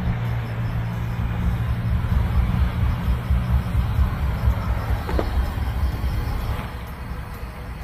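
A diesel locomotive rumbles past close by.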